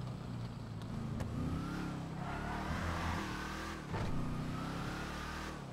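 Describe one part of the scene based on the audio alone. A car engine revs loudly, its pitch rising and falling as it drives.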